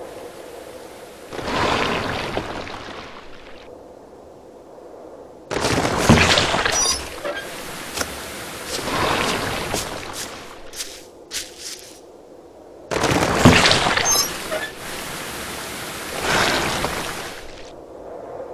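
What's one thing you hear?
Water gushes out and splashes.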